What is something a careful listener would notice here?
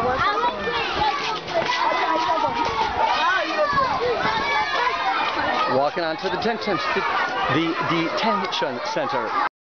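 A crowd of people chatter nearby outdoors.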